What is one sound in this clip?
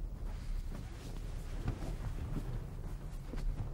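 Heavy blankets rustle as a man gets up.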